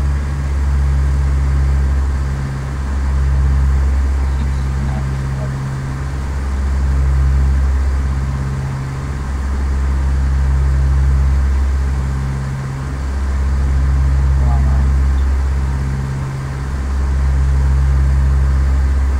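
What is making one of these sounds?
A small propeller plane's engine drones steadily, rising and falling slightly.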